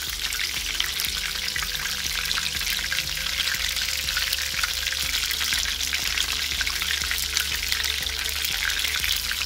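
Chicken sizzles and crackles in hot oil in a pan.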